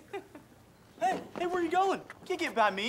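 A teenage boy shouts excitedly close by.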